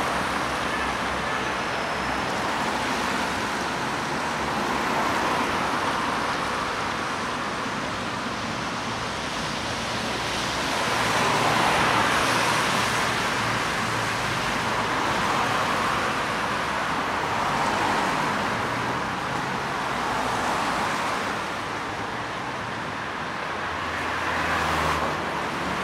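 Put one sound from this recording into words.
Car tyres hiss past on a wet road, coming and going steadily.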